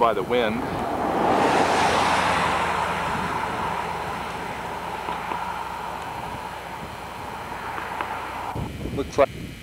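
A van drives past on the road and fades away.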